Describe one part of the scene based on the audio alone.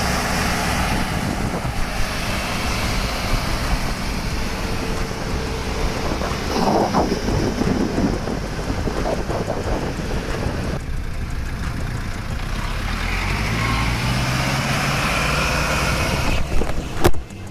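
A jeep engine rumbles low as it drives by.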